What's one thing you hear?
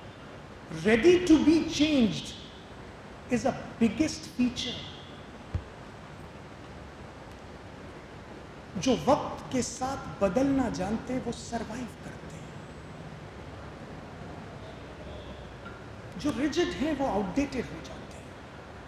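A middle-aged man speaks with animation through a microphone and loudspeakers in an echoing hall.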